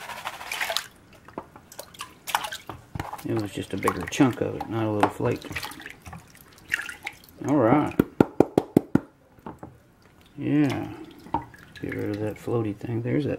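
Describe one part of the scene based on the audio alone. Plastic pans knock and clatter against each other.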